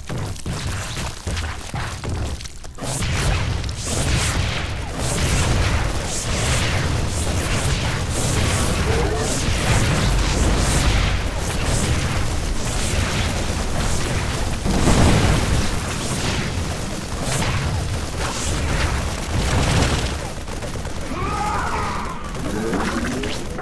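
Rapid gunfire and blasts of a battle rattle on and on.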